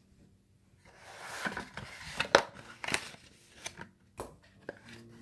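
A cardboard box rustles and scrapes as it is handled close by.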